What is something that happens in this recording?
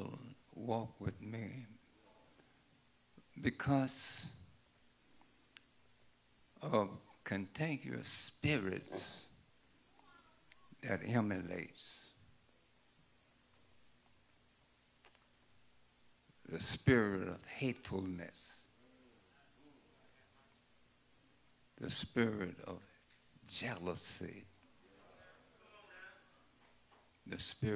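An elderly man preaches through a microphone in short bursts with long pauses.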